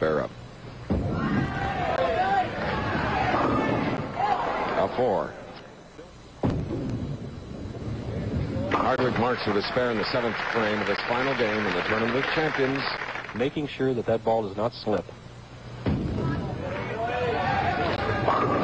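Bowling pins crash and scatter.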